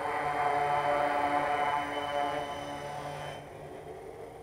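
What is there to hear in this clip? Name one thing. A small electric tricopter's propellers whine and buzz.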